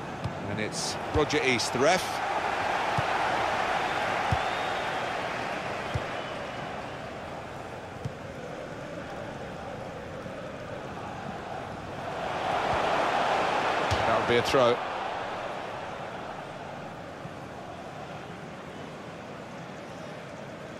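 A large stadium crowd roars and murmurs, swelling and fading.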